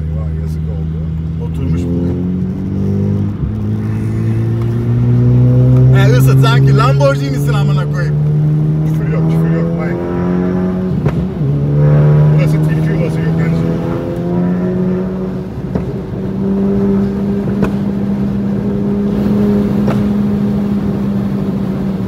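A turbocharged four-cylinder hatchback accelerates hard through the gears.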